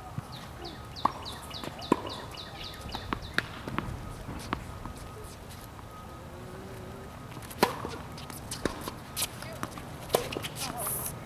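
A tennis ball is struck with sharp pops by rackets.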